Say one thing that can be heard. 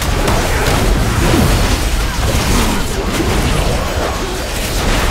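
Game weapons clash and strike in combat.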